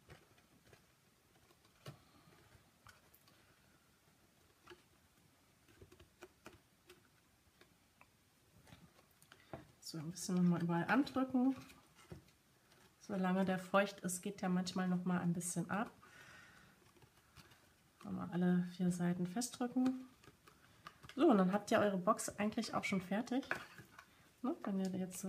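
Stiff paper rustles and crinkles as it is folded.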